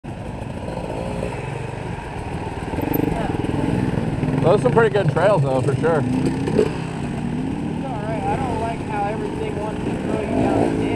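Dirt bike engines idle and rev nearby.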